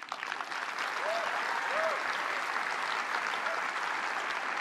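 People in an audience cheer and whoop.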